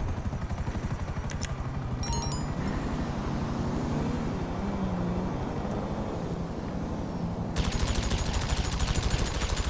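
A helicopter's rotor thuds overhead.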